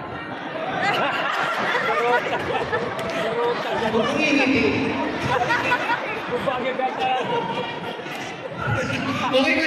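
A young man sings into a microphone through loudspeakers in a large echoing hall.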